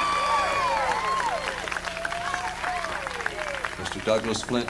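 A fiddle plays sliding notes.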